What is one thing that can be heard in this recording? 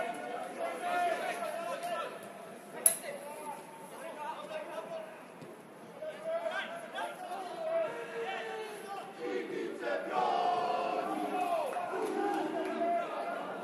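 Young men shout to each other across an open football pitch outdoors.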